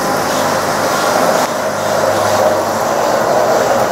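A gondola rattles over the pulleys as it arrives.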